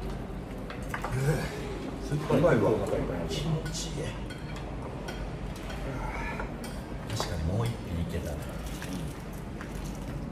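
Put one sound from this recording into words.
Young men talk and laugh together nearby.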